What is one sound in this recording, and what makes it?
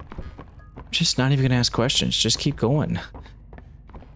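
A man speaks close to a microphone, loudly and with animation.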